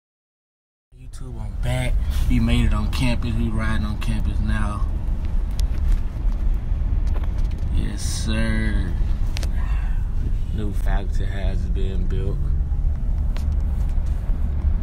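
A car engine rumbles while driving.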